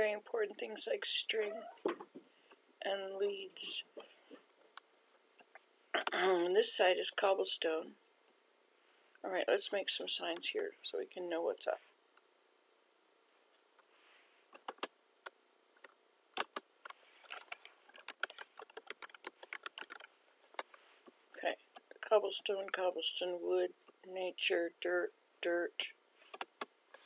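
An elderly woman talks calmly and close to a microphone.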